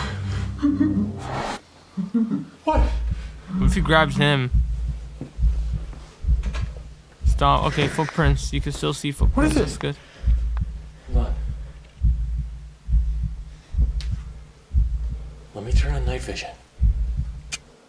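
A young man speaks quietly and nervously, heard through a recording.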